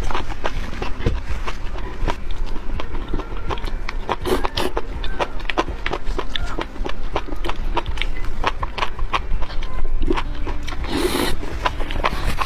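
A young woman slurps noodles loudly, close to a microphone.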